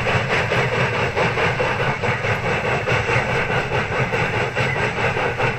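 A steam locomotive chugs hard with rapid, rhythmic puffs.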